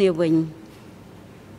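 An elderly woman speaks a few words into a microphone.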